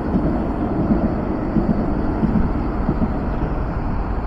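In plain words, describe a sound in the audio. A tram rumbles past on its tracks.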